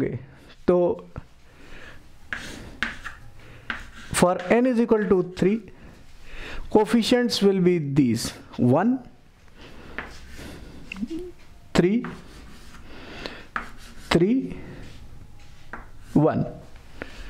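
A middle-aged man speaks calmly and explains, close to a microphone.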